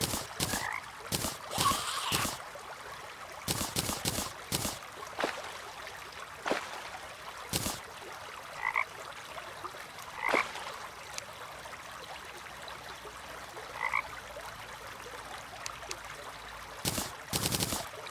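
Game menu clicks and item pickup sounds pop now and then.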